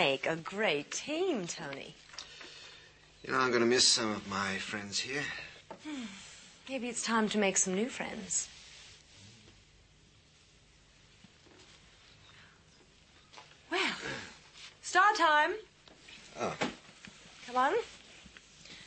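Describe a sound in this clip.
A man speaks in a conversational tone, close by.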